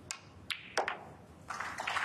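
Snooker balls click together.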